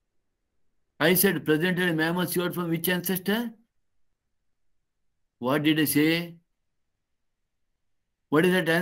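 An older man speaks calmly into a microphone, as if over an online call, with pauses between phrases.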